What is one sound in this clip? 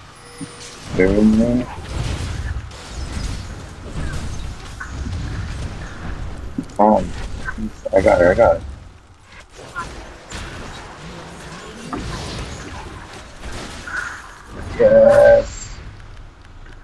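Swords and blows clash in quick bursts.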